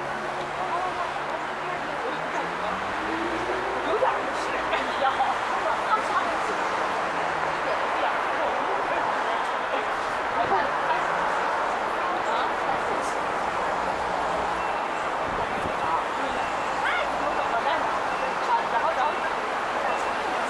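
City traffic hums steadily along a busy street.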